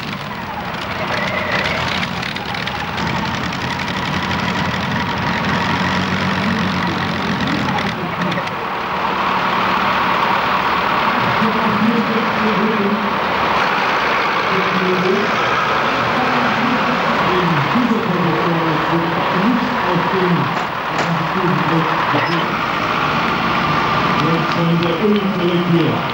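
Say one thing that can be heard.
A tractor engine roars loudly at full power.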